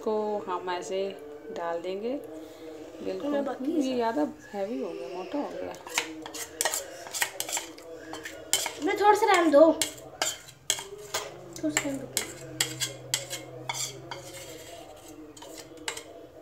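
A spoon scrapes against a metal bowl.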